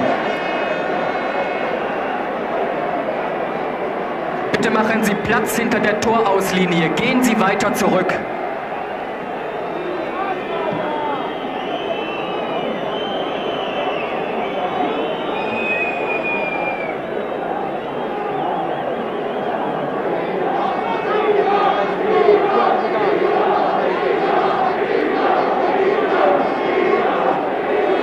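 A large stadium crowd murmurs and cheers outdoors.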